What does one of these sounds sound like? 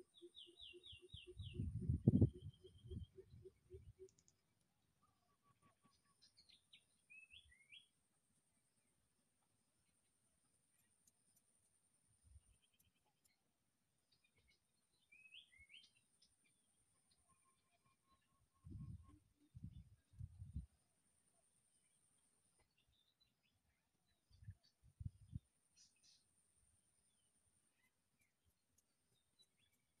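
Monkeys shuffle softly on dry leaves.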